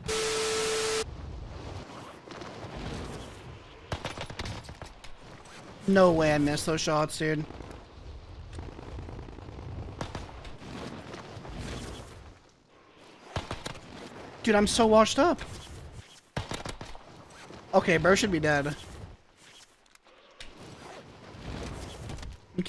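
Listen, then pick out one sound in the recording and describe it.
Wind rushes steadily past during a parachute fall.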